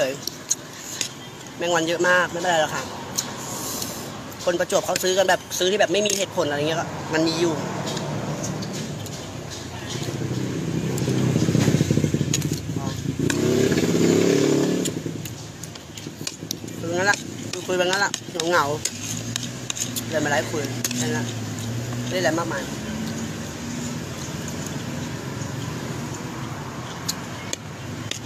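A fork scrapes and clinks on a plate.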